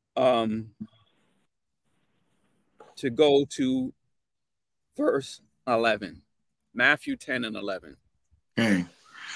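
A man speaks calmly through an online call, in short phrases with pauses.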